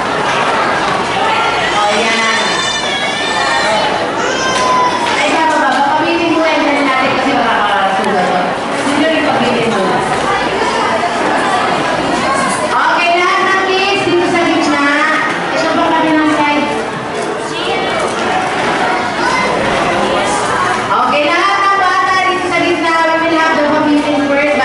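A woman talks with animation through a microphone and loudspeaker in a large echoing hall.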